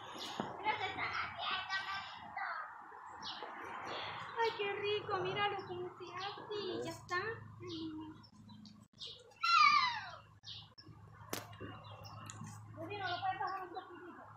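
A young girl talks and babbles close by.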